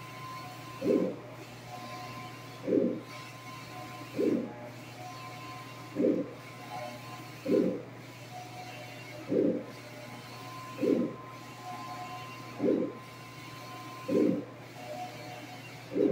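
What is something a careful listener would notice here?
A printer's print head whirs steadily back and forth.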